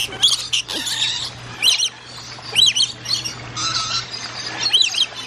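Parrots screech and squawk loudly close by.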